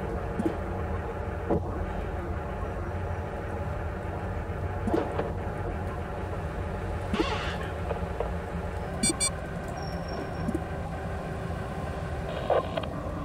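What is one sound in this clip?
A low electronic drone hums steadily throughout.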